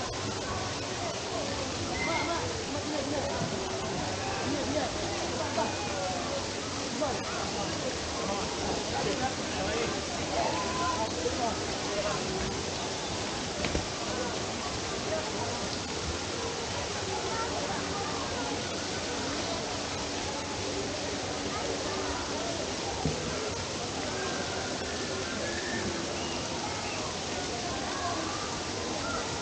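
Children shout and play in the distance.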